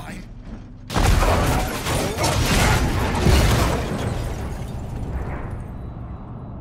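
A vehicle crashes with a loud, crunching roar.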